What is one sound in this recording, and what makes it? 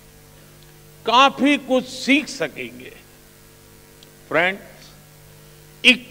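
An elderly man speaks slowly and firmly into a microphone, with pauses.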